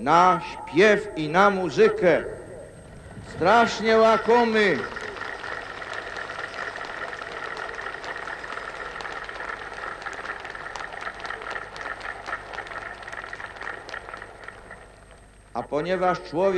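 An elderly man sings slowly through a microphone and loudspeakers.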